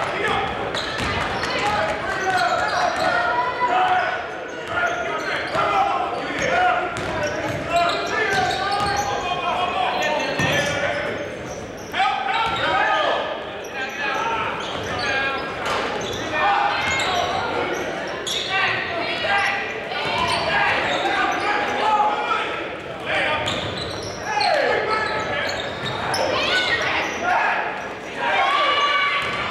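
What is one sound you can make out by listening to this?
A crowd of spectators talks and calls out in a large echoing gym.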